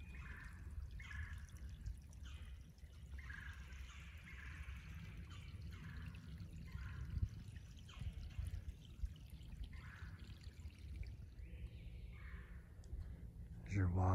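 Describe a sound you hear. A small stream trickles gently nearby.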